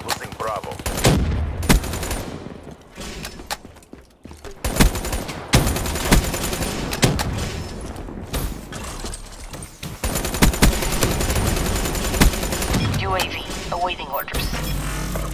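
Rifle shots crack in a video game.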